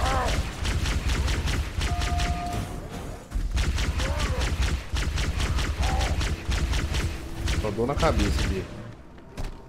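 A rapid-fire energy gun shoots in fast bursts.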